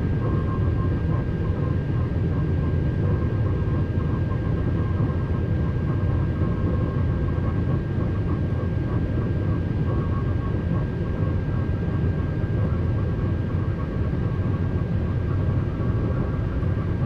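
A train rumbles steadily along the rails at high speed.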